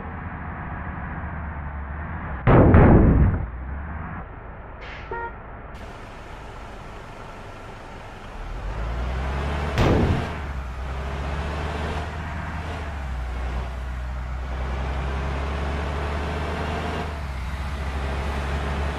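A bus engine hums steadily with a low drone.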